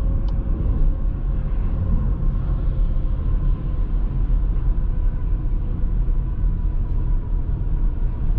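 A car's engine hums steadily as it drives at speed on a highway.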